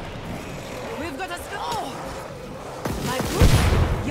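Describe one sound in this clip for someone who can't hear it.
A monster snarls and growls close by.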